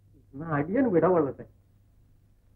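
A man speaks pleadingly, close by.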